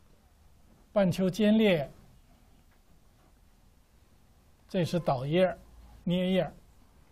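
An elderly man speaks calmly in short phrases, close by.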